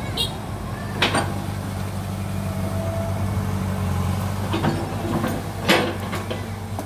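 Branches crack and snap as an excavator tears through trees.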